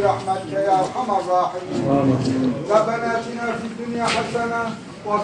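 A man chants a prayer in a loud, drawn-out voice, ringing through a large echoing hall.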